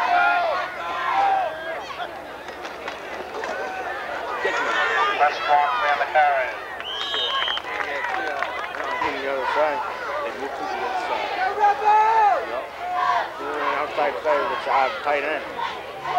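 A crowd of people cheers and shouts outdoors.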